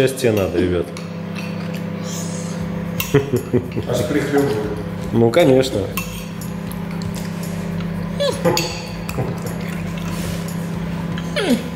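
A spoon clinks and scrapes against a glass bowl.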